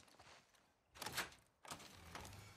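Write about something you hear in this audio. A door is pushed open with a creak.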